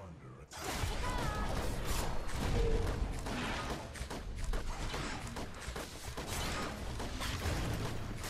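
Game combat sounds clash and crackle with spell effects and impacts.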